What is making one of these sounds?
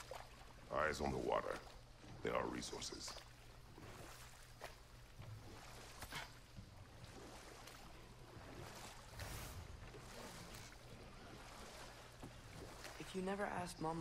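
A paddle splashes and dips through calm water.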